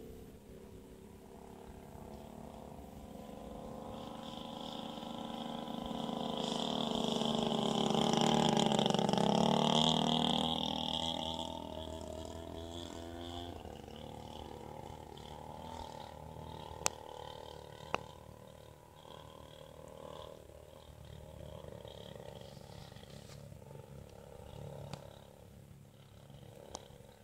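A small propeller plane drones overhead, growing louder as it passes and then fading into the distance.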